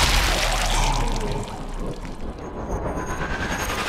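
A bullet strikes with a slowed, deep, booming thud.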